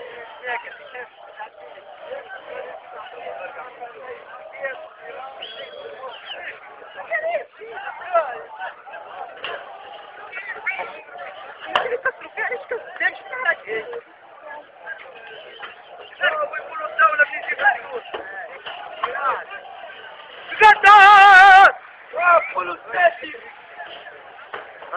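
A crowd of people talks and calls out outdoors.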